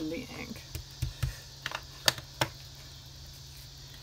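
A small plastic lid clicks open and shut.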